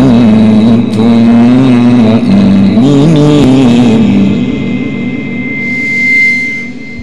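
A man chants melodically through a microphone with a sustained, wavering voice.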